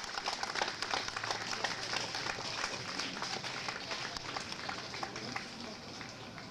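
An audience claps outdoors.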